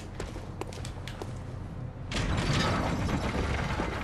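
A heavy metal lever clanks as it is pulled.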